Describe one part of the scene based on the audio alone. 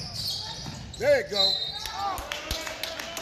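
Sneakers squeak sharply on a hard court in an echoing gym.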